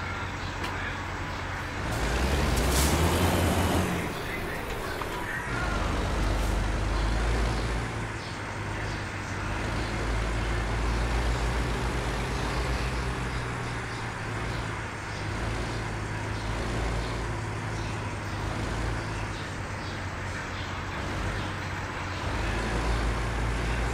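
A heavy truck engine rumbles low and steady as the truck drives slowly.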